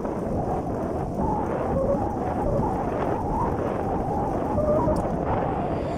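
Wind rumbles and buffets loudly against the microphone while riding along.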